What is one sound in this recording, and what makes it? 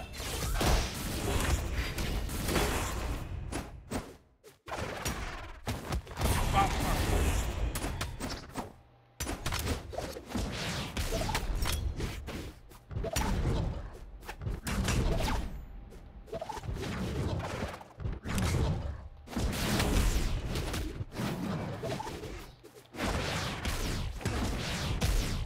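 Game fighters strike each other with loud hits and whooshes.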